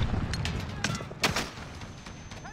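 Gunfire cracks in short bursts.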